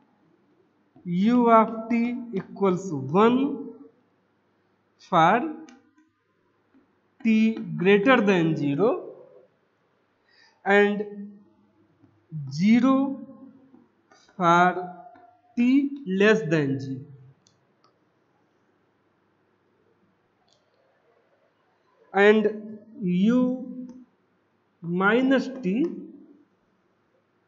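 A middle-aged man speaks calmly, as if explaining, close by.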